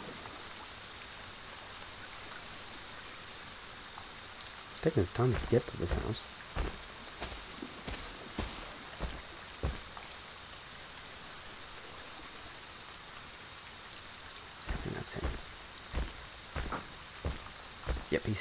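Rain patters steadily.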